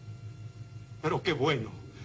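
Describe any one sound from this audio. A man shouts with animation.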